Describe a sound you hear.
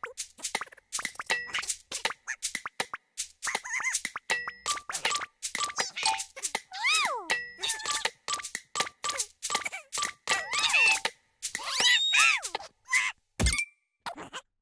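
A metronome ticks steadily.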